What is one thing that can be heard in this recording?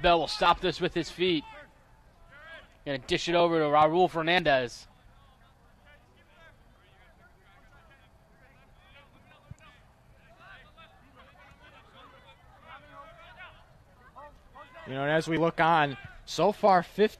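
Young men shout across an open outdoor field.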